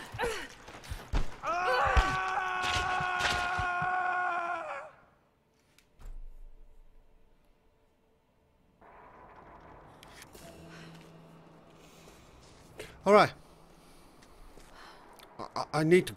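A man exclaims loudly and talks with animation into a close microphone.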